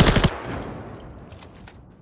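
A rifle fires in short loud bursts.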